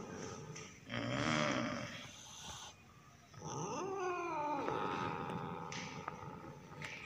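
A cat yowls loudly.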